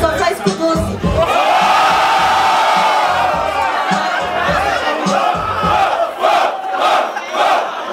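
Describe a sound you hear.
A young man raps loudly into a microphone over loudspeakers.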